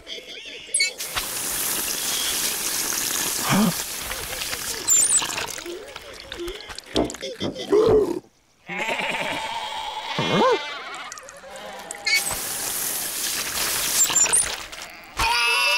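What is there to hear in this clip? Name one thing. Water sprays hard from a hose and splashes.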